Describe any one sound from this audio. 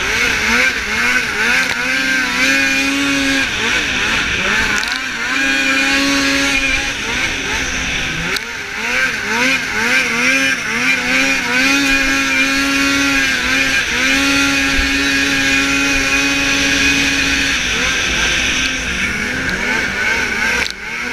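A jet ski engine revs up and down loudly, close by.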